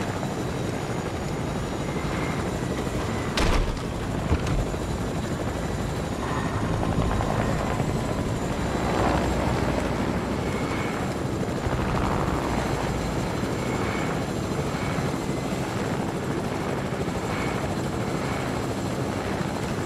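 A helicopter's rotor thrums steadily.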